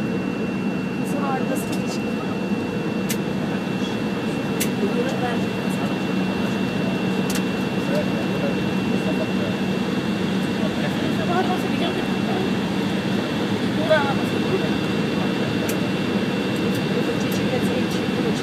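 An aircraft rumbles as it rolls along the ground.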